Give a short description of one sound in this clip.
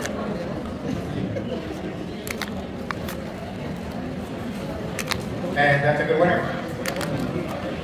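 Paper cards rustle and flick as hands handle them.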